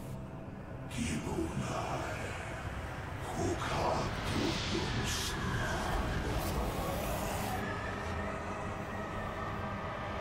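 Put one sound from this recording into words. An eerie magical rush swells and hums.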